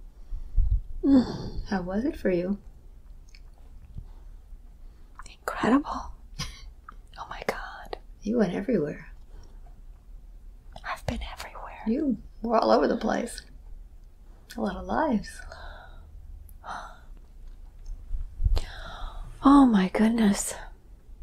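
A middle-aged woman speaks softly and wearily, close by, in short phrases with pauses.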